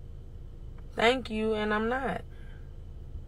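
A young woman speaks briefly and loudly, close by.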